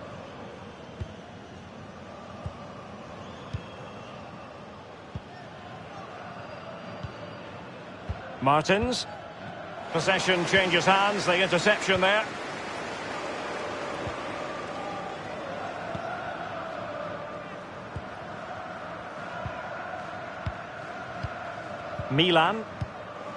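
A football is kicked with short dull thuds.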